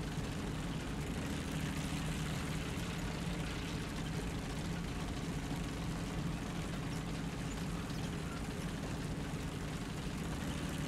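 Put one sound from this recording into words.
Tank tracks clank and rattle over grass.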